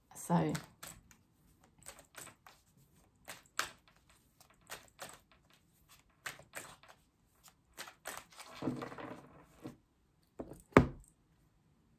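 Cards rustle and tap as a woman shuffles them.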